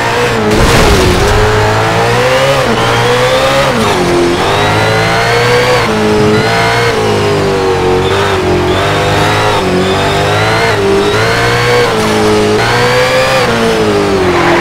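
A car engine roars, rising in pitch and dropping sharply as it shifts gears.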